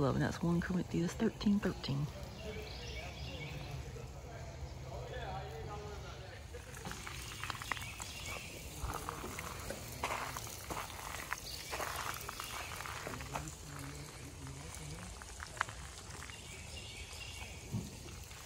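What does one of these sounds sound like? Water trickles gently in a shallow stream.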